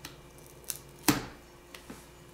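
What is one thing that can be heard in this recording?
A phone is set down on a wooden surface with a knock.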